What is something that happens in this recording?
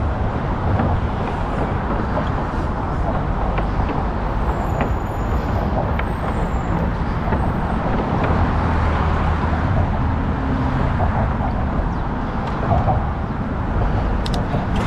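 Traffic rumbles steadily from a roadway below.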